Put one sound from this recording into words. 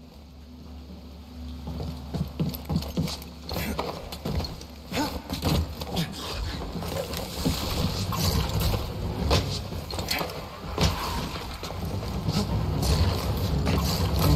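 Footsteps clank on metal.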